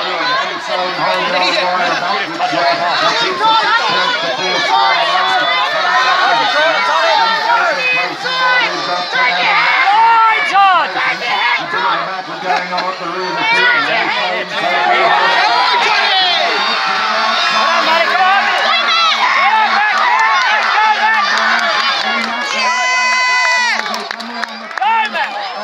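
A large crowd outdoors cheers and shouts excitedly.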